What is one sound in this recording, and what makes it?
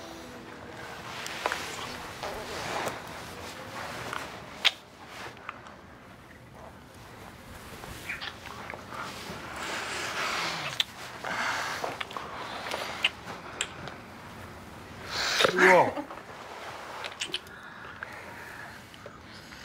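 A man and a woman kiss with soft, wet smacking sounds.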